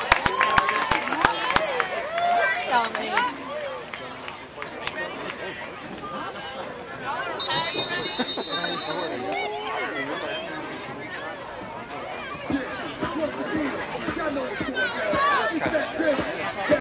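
A crowd of people chatters and cheers outdoors at a distance.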